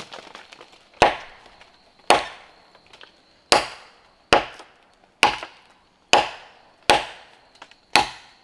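A machete chops sharply into bamboo with regular blows.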